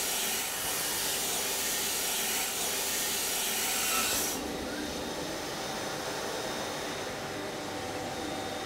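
Water rushes through a pipe with a steady hiss.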